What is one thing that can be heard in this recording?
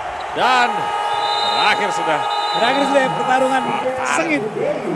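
A loud buzzer sounds steadily in an echoing hall.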